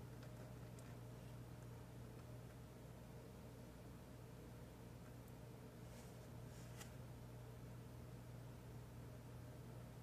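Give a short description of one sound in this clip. Small plastic parts tap and click as they are fitted together.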